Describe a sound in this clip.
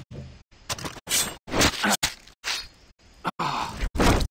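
A knife slices through flesh and hide.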